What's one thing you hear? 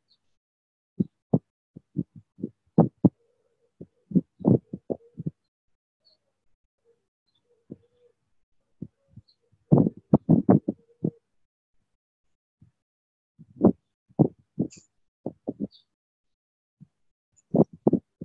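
A woman speaks calmly and softly through an online call.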